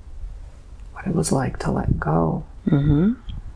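A young man speaks quietly into a close microphone.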